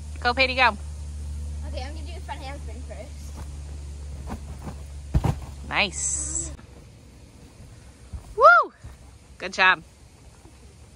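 A young girl talks and squeals with excitement close by.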